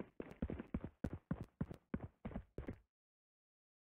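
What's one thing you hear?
Footsteps walk quickly on a hard floor in a video game.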